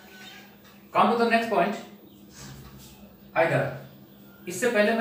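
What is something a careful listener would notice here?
A man speaks nearby in a clear, explaining voice, with short pauses.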